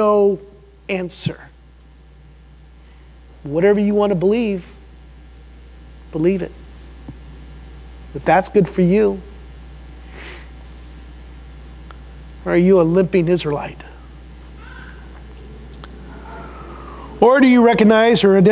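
A middle-aged man speaks through a microphone with animation, in phrases broken by pauses.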